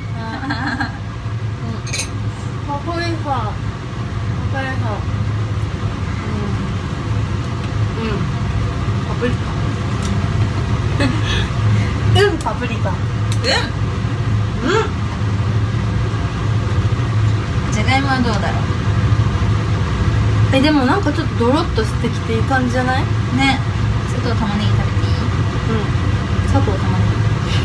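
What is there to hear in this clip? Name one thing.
A young woman talks close by in a lively way.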